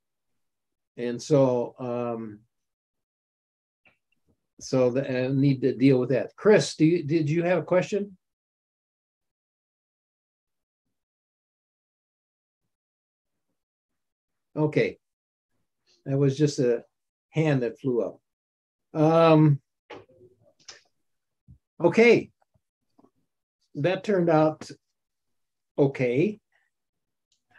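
A man speaks over an online call, pausing between phrases.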